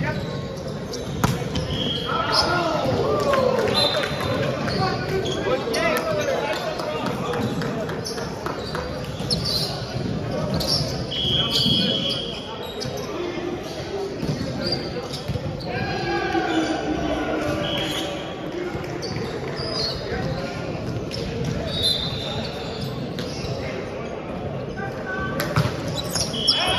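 Young men and women shout and call out in a large echoing hall.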